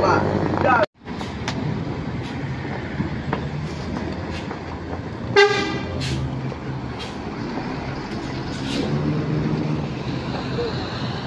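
A large bus engine rumbles low while climbing a steep bend.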